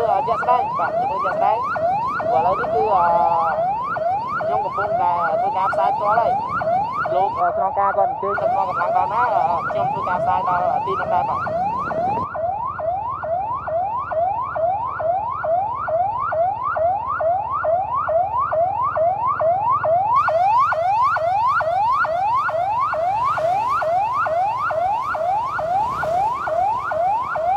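A police van's siren wails in a fast, repeating rising yelp.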